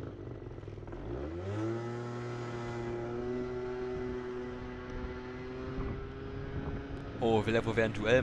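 A motorcycle engine revs up and holds a higher pitch.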